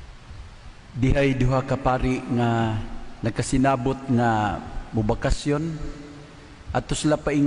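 A man speaks calmly into a microphone, his voice echoing in a large hall.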